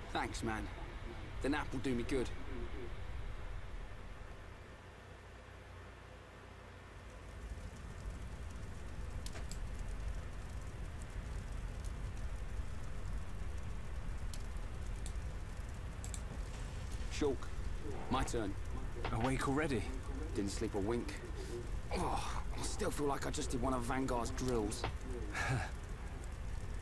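Young men talk calmly, close by.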